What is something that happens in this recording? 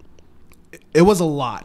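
A second man speaks briefly close to a microphone.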